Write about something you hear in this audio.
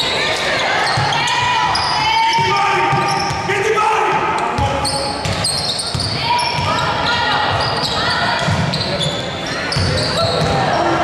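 A basketball bounces with dull thuds on the court.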